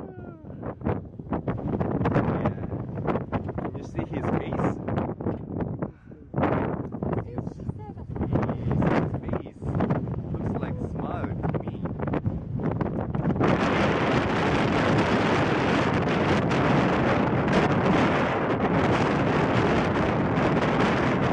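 Wind gusts and buffets against the microphone outdoors.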